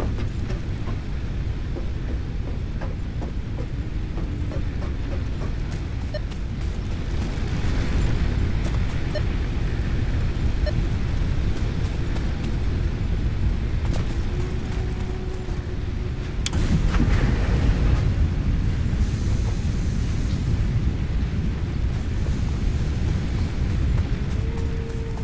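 Machines hum and rumble steadily nearby.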